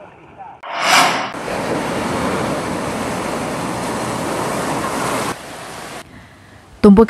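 Waves crash and roar onto a shore.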